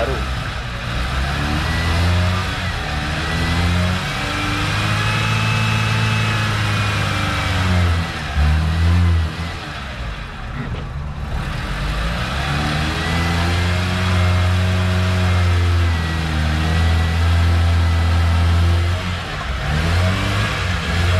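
A car engine idles nearby, its pitch rising and falling as it revs.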